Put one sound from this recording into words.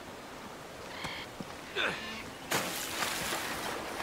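Water splashes around a swimmer.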